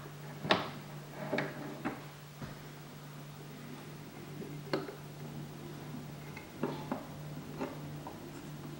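Small clicks and knocks come from a gramophone being handled.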